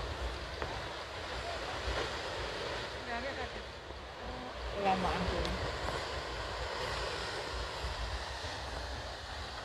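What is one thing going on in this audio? Ocean waves break against rocks far below.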